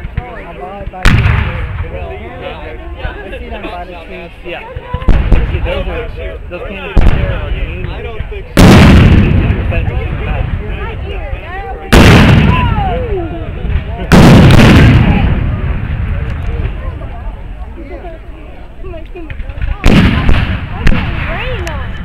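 Cannons fire loud, echoing booms outdoors, one after another.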